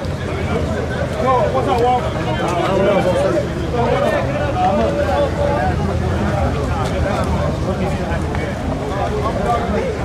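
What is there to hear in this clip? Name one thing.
A crowd of men chatter loudly nearby outdoors.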